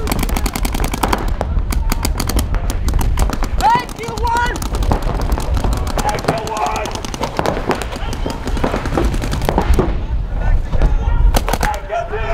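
Paintball markers fire in rapid bursts of sharp pops.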